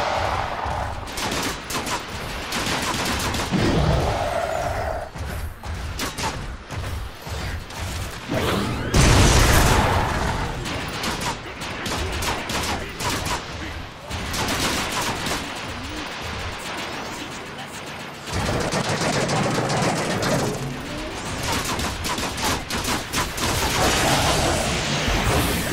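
A giant robot swings a heavy hammer with crunching metal impacts.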